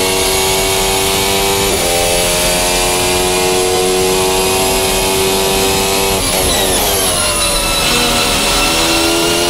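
A racing car engine screams at high revs, shifting up through the gears and then dropping down as it brakes.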